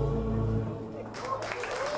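A band plays a song on guitars and ends it.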